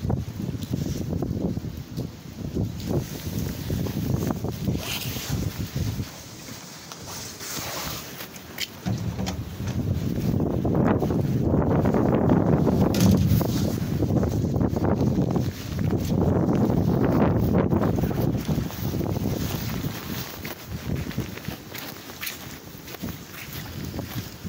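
Footsteps scuff along on wet stone.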